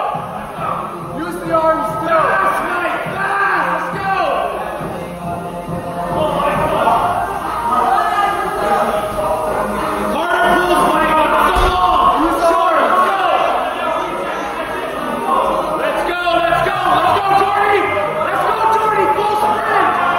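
Young women and men talk and call out encouragement in an echoing hall.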